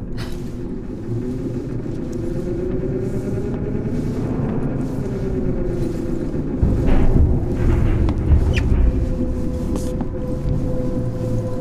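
A low mechanical hum drones steadily through a large echoing space.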